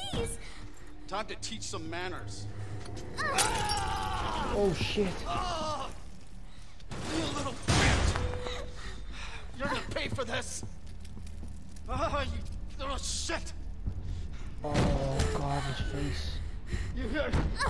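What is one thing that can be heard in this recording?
An elderly man speaks in a menacing, growling voice.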